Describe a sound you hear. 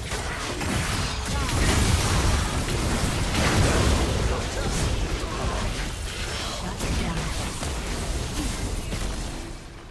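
Spell blasts and impacts crackle and boom in a fast fight.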